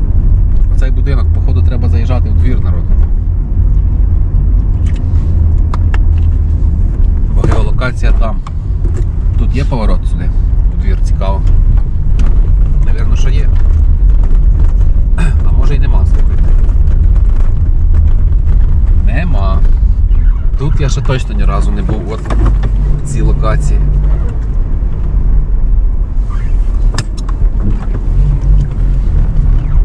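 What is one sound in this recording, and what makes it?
A car engine hums low and steady inside a moving car.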